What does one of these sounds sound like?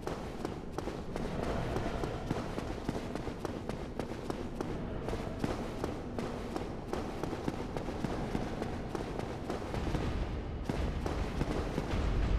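Armoured footsteps clank quickly on stone.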